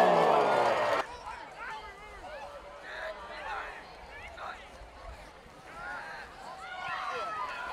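A crowd of spectators murmurs and calls out in the distance.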